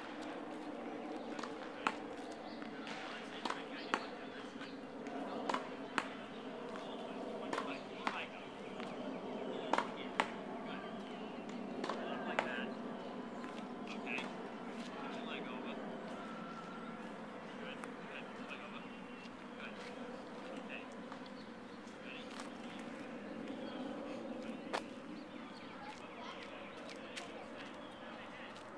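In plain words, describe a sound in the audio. A man talks to a child in the distance outdoors.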